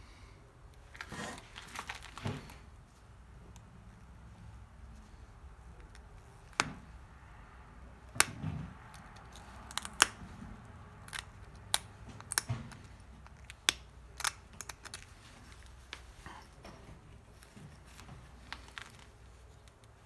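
A stone is knapped with a tool, making sharp clicks and scrapes.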